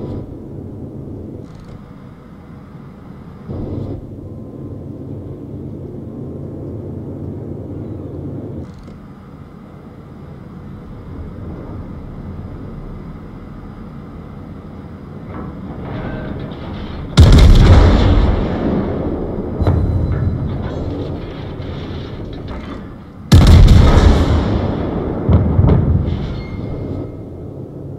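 A ship's engine hums low and steady.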